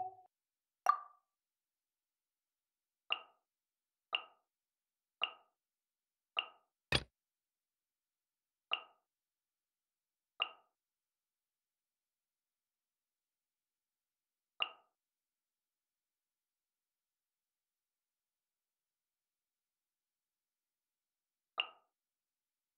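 Short, bright menu chimes sound one at a time.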